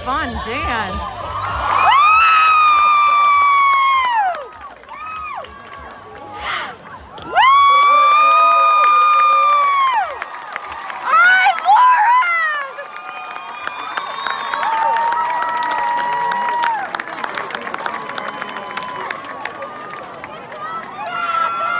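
A crowd of young women screams and cheers loudly nearby.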